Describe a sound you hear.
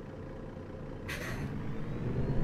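A bus door hisses and thumps shut.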